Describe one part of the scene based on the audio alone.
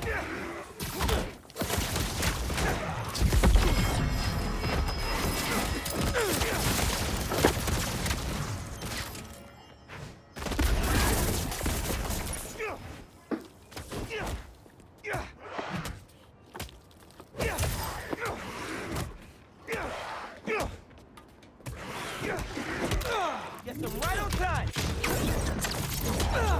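Punches and kicks thud and smack in a fight.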